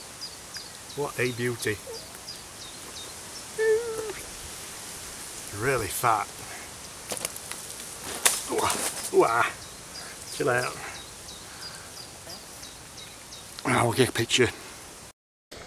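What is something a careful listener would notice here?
A young man talks calmly and cheerfully close by.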